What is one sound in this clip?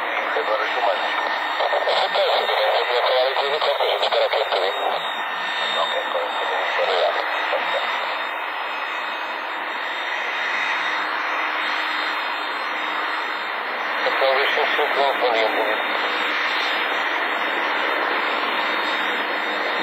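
Jet engines roar loudly as an airliner taxis.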